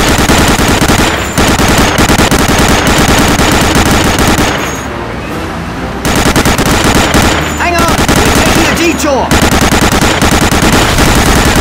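A heavy machine gun fires in rapid, loud bursts.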